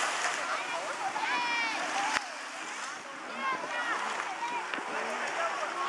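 Water splashes as swimmers move through shallow water.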